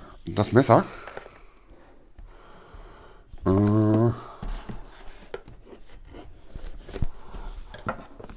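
A knife slits the tape on a cardboard box.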